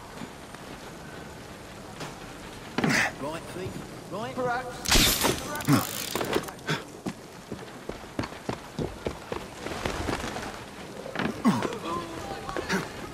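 Hands scrape and thud while climbing a wooden wall.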